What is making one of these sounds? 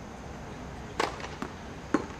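A tennis racket strikes a ball close by with a sharp pop.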